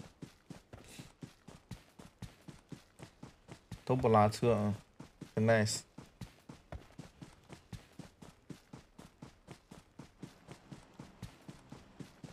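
Footsteps run quickly and steadily through grass.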